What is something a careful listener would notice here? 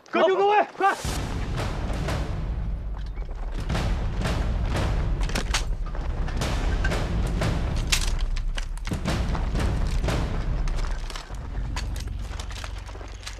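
Rifles fire in rapid bursts outdoors.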